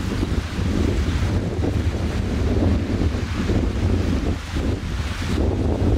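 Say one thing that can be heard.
Small waves lap gently against rocks.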